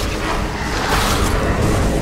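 A heavy blow splatters flesh with a wet squelch.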